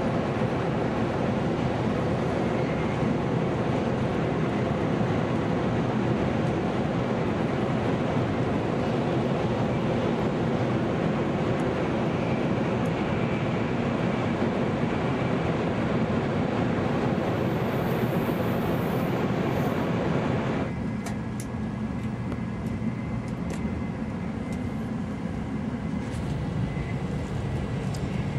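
A high-speed train rumbles along the track at speed, heard from inside a carriage.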